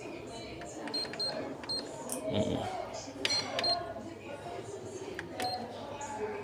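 A keypad beeps briefly as buttons are pressed.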